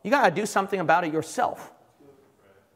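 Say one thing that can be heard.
A young man speaks loudly and with emphasis into a microphone in a reverberant hall.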